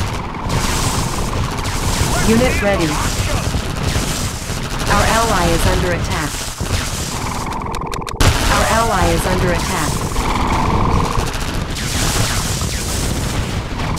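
Gunfire and explosions rattle steadily in a battle.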